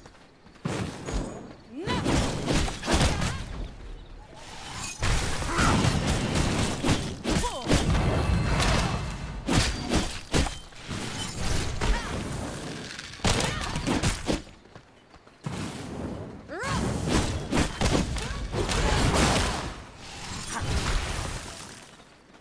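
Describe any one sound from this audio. Game weapons strike enemies with sharp impacts.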